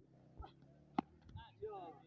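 A cricket bat hits a ball with a sharp crack.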